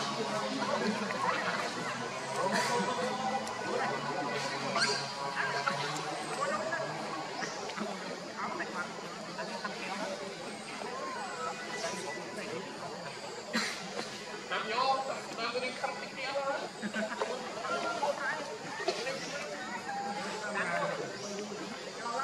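A baby monkey squeals in high, short cries.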